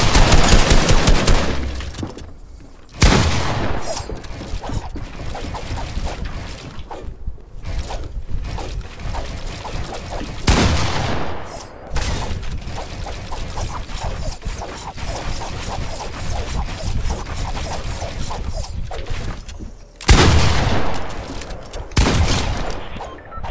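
Wooden panels snap into place with quick, rapid thuds.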